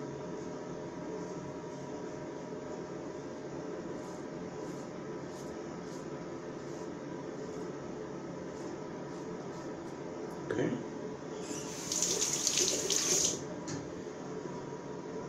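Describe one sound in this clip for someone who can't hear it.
A razor scrapes across stubble in short strokes.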